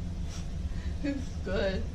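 A young woman speaks up close, cheerfully.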